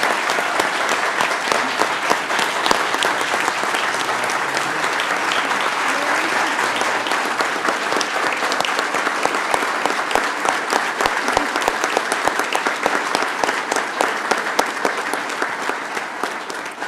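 A large crowd applauds steadily in an echoing hall.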